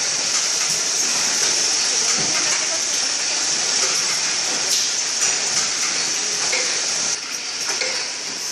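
Factory machinery hums and hisses steadily nearby.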